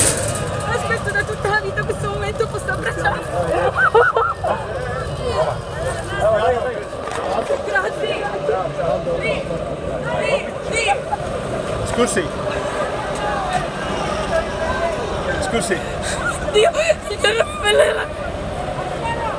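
A young woman talks excitedly close by.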